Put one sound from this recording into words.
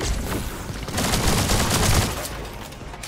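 Heavy impacts thud as a game weapon strikes.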